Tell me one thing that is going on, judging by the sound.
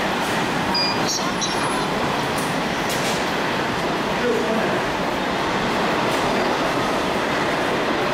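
A steady murmur of passers-by fills a large echoing hall.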